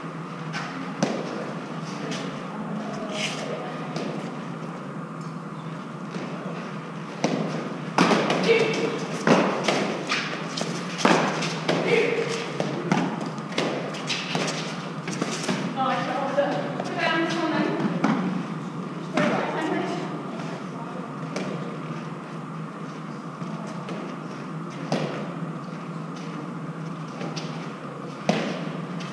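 A hard ball smacks off a concrete wall, struck by a gloved hand, echoing in a walled court.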